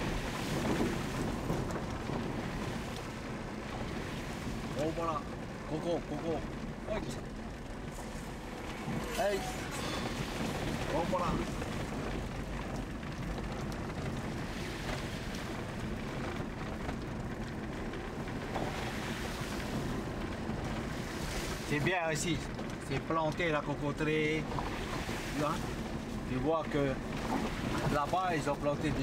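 A car engine rumbles steadily as the vehicle drives along a bumpy dirt road.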